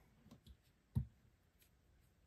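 A small screw clicks against a hard surface.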